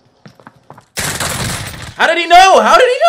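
Gunfire rattles in a rapid burst close by.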